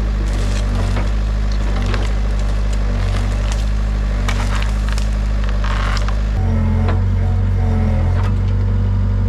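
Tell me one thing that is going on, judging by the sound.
Branches crack and snap as an excavator pushes through brush.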